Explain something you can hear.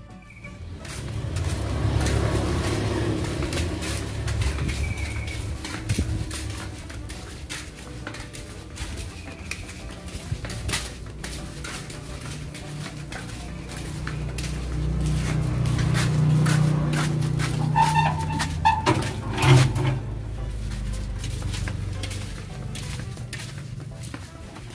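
Footsteps scuff along a paved path.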